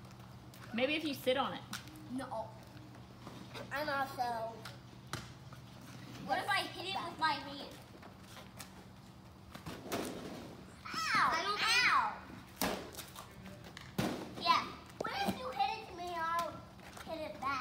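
A rubber ball bounces on pavement.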